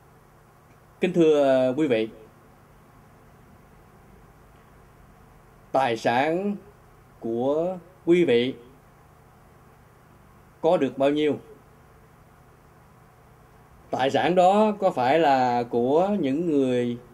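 A middle-aged man speaks emotionally and haltingly into a close microphone, with long pauses.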